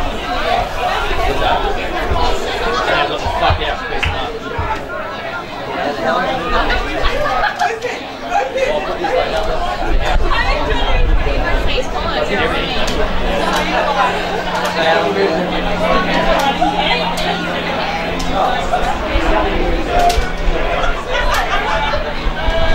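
A crowd of men and women chatter and call out nearby, outdoors.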